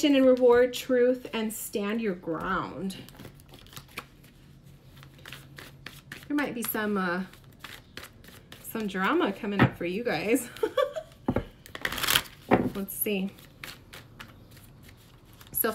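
Playing cards shuffle and riffle in a woman's hands.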